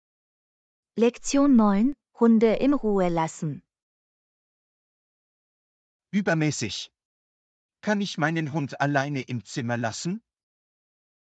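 A man speaks calmly and clearly, as if reading out.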